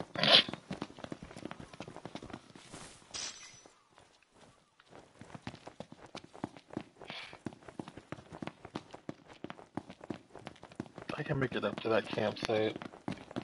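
Quick footsteps run on a hard road.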